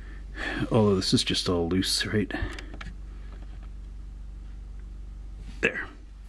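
Fingers handle a small plastic toy car, with faint taps and scrapes.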